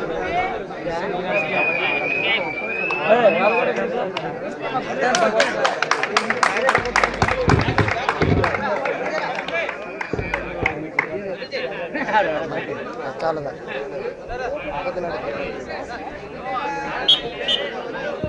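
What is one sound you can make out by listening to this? A large crowd shouts and chatters outdoors.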